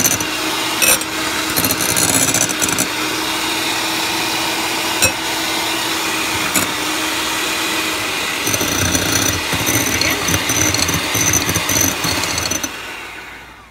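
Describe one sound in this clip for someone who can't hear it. An electric hand mixer whirs loudly and steadily, then stops.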